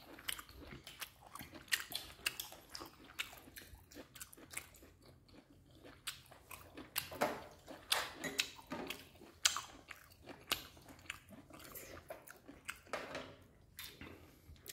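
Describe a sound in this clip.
A boy chews and slurps food noisily.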